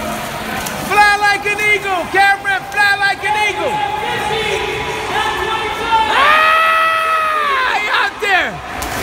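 Young men shout and cheer with animation in an echoing hall.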